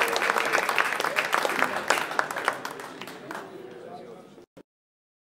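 An audience claps loudly, then the applause fades away.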